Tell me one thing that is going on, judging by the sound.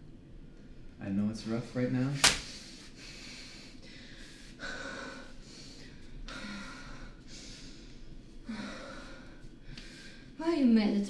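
A young woman speaks with agitation nearby.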